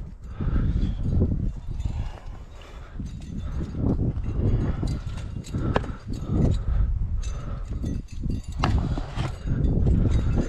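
Hands scrape and pat against rough rock.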